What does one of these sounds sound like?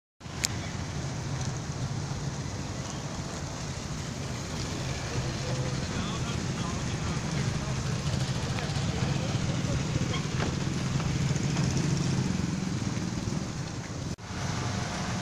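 Traffic rumbles past outdoors.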